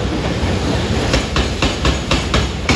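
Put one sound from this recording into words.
Steel wheels clack over rail joints.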